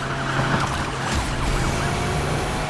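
A car crashes through debris with a loud bang.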